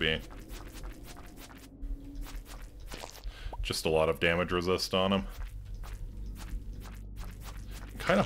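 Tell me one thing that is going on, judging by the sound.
A sword swishes in quick swings.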